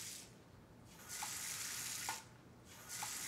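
A tap runs water into a basin.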